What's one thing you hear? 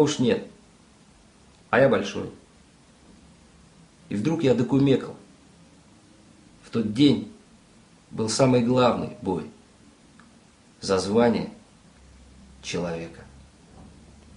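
A young man speaks close by in short, earnest phrases with pauses between them.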